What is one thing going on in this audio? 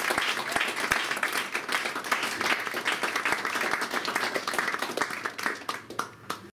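An audience applauds loudly, fading toward the end.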